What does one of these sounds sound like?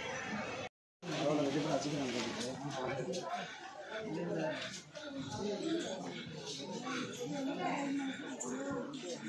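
Several men and women talk nearby in a crowd.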